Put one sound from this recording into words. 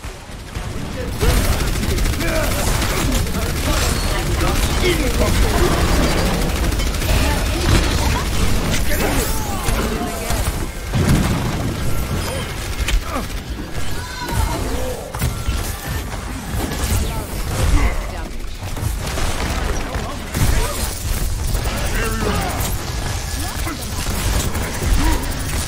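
Weapons fire rapidly in a loud, chaotic battle.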